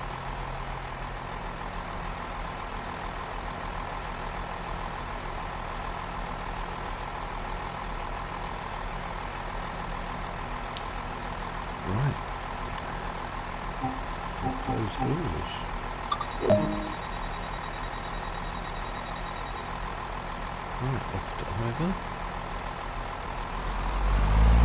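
A train engine idles with a low, steady hum.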